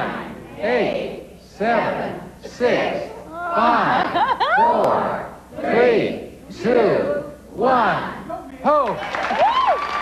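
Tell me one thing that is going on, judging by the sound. A crowd of audience members chants a countdown loudly in unison, one number each second.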